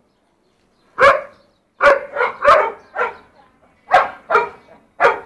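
A dog barks loudly and repeatedly nearby.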